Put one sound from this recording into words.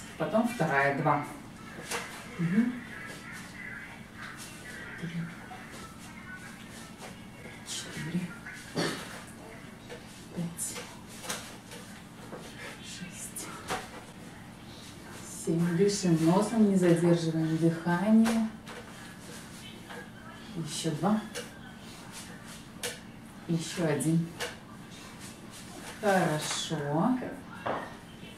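A woman speaks briskly, giving instructions.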